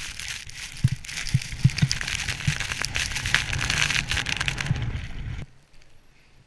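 Skis hiss and rush through deep snow.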